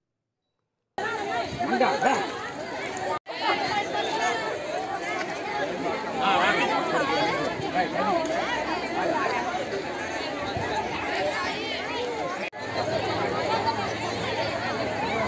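A group of women sing together outdoors.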